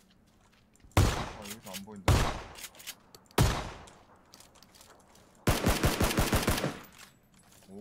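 Loud gunshots fire in bursts, with short echoes.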